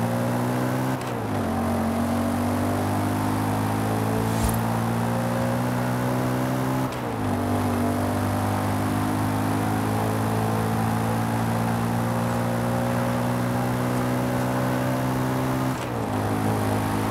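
A car engine drops in pitch at each gear change.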